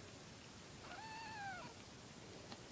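Newborn kittens mew close by.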